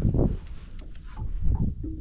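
Footsteps thud on a hard boat deck.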